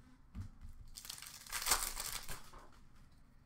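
A foil card pack rustles and crinkles in hands.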